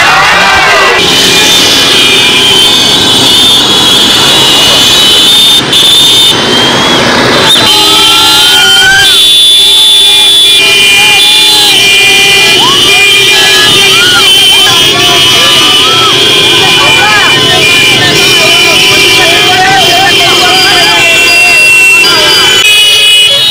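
Motorcycle engines rumble at low speed.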